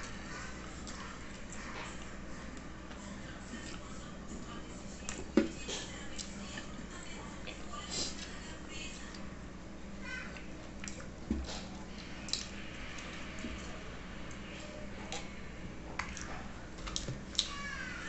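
Fingers squish and pick at soft food.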